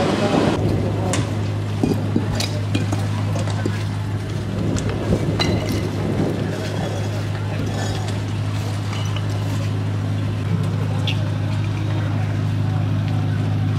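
Thrown stones clatter on the pavement.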